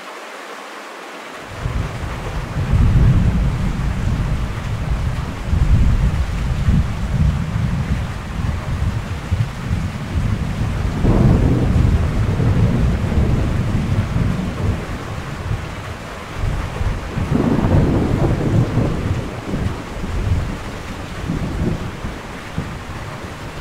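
Rain and sleet lash against a window pane.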